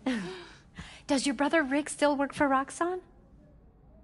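A woman asks a question calmly.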